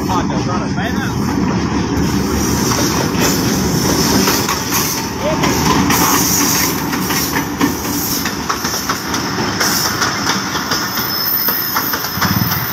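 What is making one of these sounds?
A diesel locomotive rumbles loudly as it rolls past close by.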